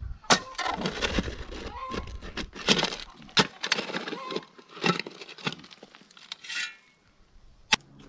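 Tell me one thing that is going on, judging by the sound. A shovel scrapes and crunches into gravelly soil.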